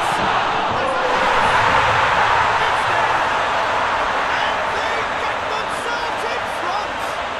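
A stadium crowd roars loudly in cheer.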